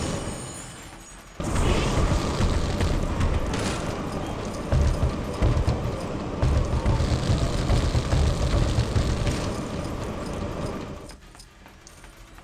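Plastic bricks clatter and scatter.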